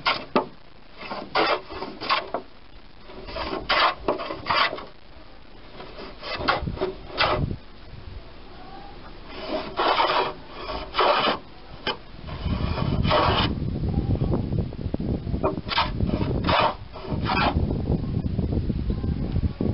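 A hand plane shaves wood in short, rasping strokes.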